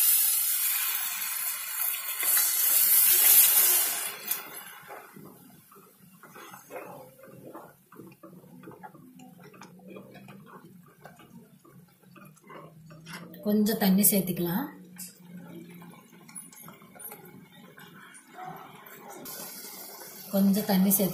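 A thick stew sizzles and bubbles in a pot.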